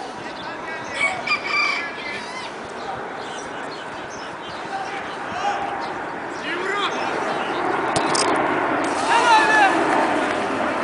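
Players shout to each other on the field.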